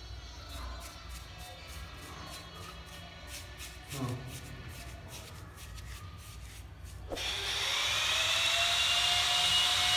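A brush dabs and scrapes wet plaster softly.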